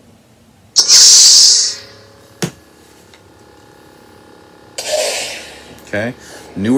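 A toy lightsaber switches on with a loud buzzing hiss.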